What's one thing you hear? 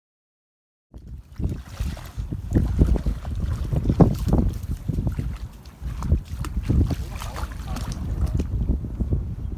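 Water splashes as a person wades through shallows.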